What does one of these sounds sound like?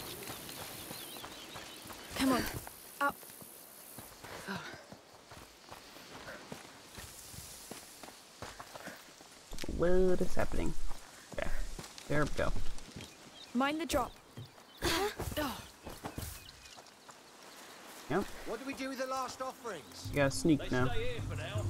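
Footsteps crunch on dry ground and gravel.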